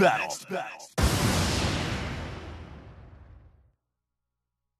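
A loud crashing hit rings out and slowly fades.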